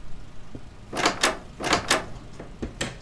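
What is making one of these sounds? A wooden door clicks and thumps open.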